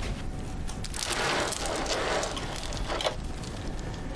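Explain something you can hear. A man speaks quietly and slowly nearby.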